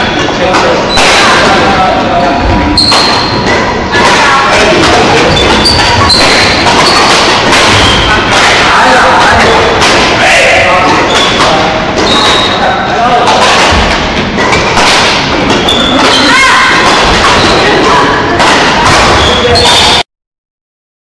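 Badminton rackets strike a shuttlecock in a large echoing hall.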